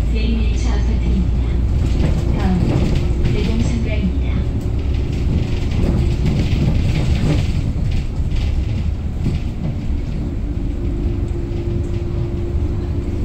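A bus rattles and creaks as it rolls over the road.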